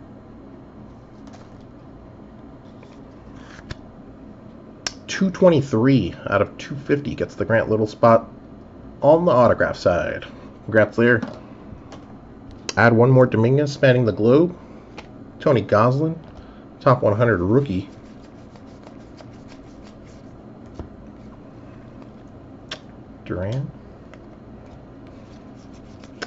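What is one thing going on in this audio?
Trading cards rustle and click softly as they are shuffled by hand.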